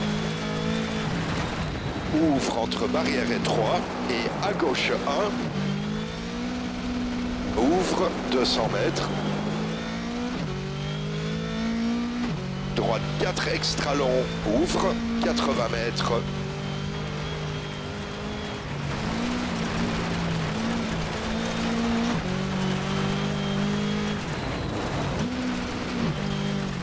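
A rally car engine drones and revs up and down through gear changes.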